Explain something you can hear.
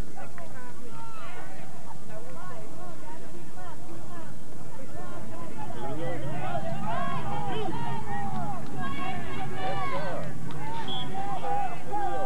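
Voices of young men sing together outdoors, heard from a distance.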